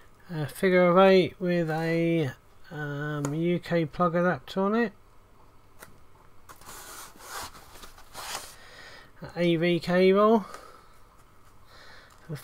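Cables rattle softly as they are unwound.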